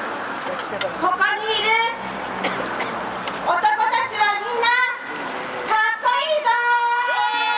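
A young woman speaks with feeling into a microphone, amplified through a loudspeaker outdoors.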